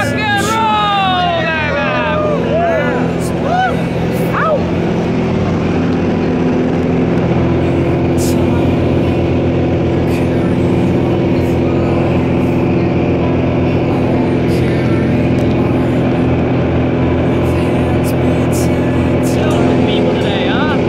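A small propeller plane's engine drones loudly and steadily, rising in pitch as the plane takes off.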